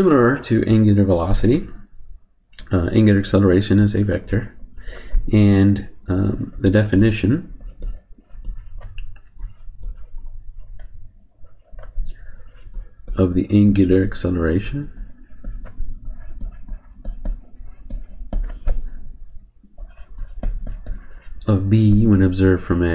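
A man speaks calmly and slowly into a close microphone, pausing between phrases.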